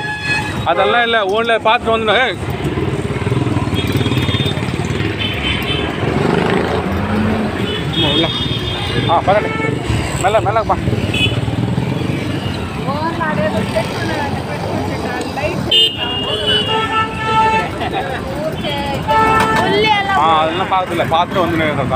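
Traffic rumbles past on a busy street.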